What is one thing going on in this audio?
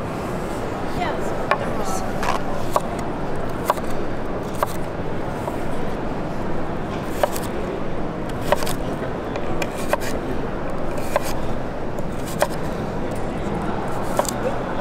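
A knife slices through carrots and taps a wooden board now and then.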